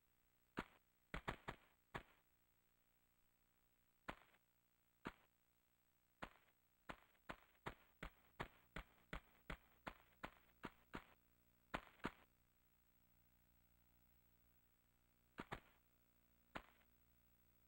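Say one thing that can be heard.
Footsteps tap on a hard floor in a quiet space.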